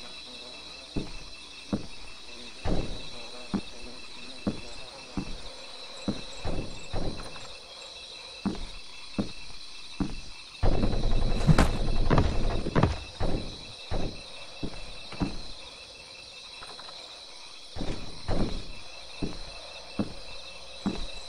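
Soft footsteps creep slowly across a wooden floor.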